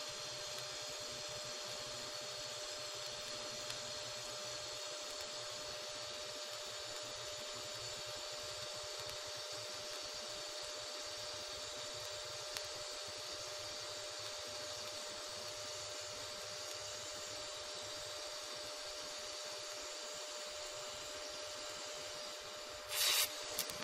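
A welding arc hisses and crackles steadily.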